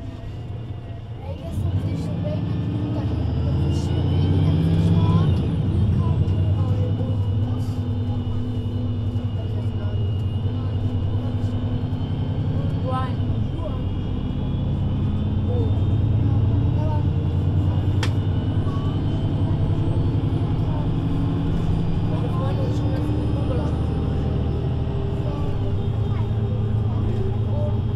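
A bus engine idles with a steady low rumble close by.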